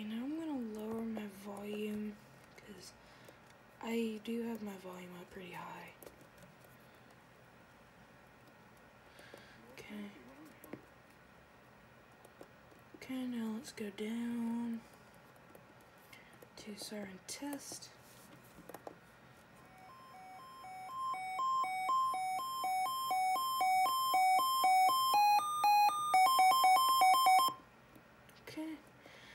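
Fingers press plastic buttons with soft clicks.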